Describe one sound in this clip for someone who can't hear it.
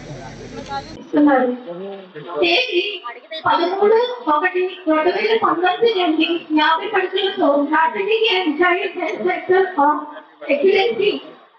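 A woman speaks into a microphone over a loudspeaker, with animation.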